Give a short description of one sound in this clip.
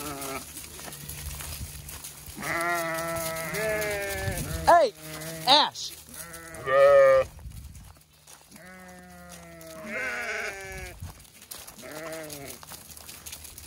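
Goats bleat loudly and repeatedly close by.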